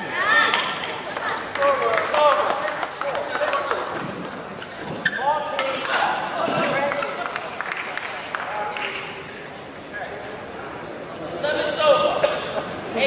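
Shoes squeak sharply on a court floor.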